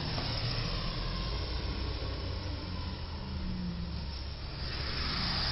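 A bus engine rumbles as it drives past.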